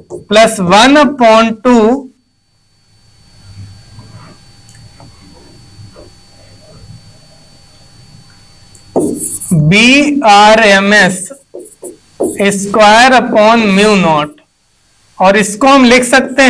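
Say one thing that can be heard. A man explains at length, speaking clearly and with animation into a close microphone.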